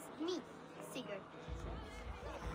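A young girl speaks up calmly, close by.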